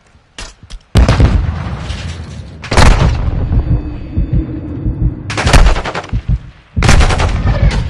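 Gunshots fire in rapid bursts with loud bangs.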